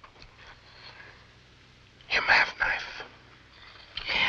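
An older man speaks in a deep voice close by.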